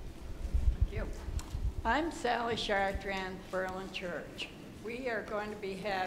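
An elderly woman speaks into a handheld microphone, heard through loudspeakers in a large echoing hall.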